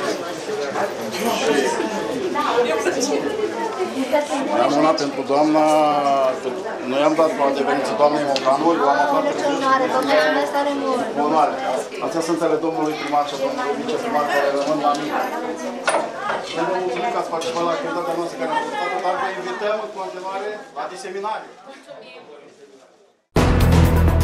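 A crowd of women and men chatter and sing together in an echoing room.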